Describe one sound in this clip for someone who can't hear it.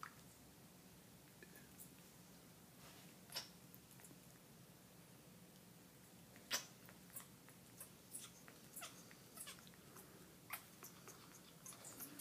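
A parrot makes short clicking and chirping sounds close by.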